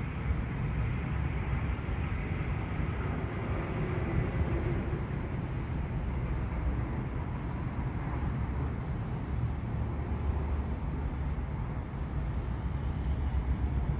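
Wind blows steadily outdoors, rumbling low and close.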